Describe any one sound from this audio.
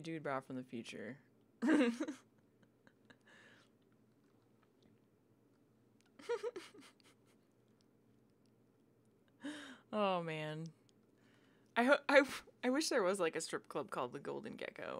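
A young woman talks casually into a headset microphone, close up.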